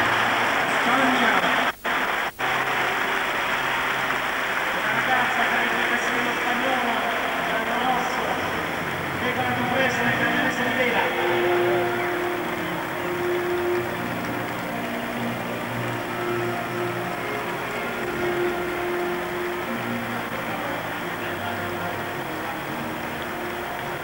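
A large crowd cheers and murmurs in a vast open stadium.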